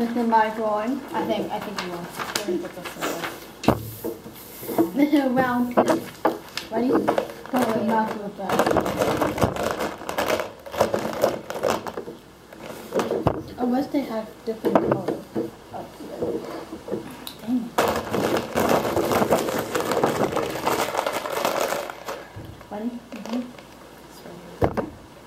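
A boy talks close by.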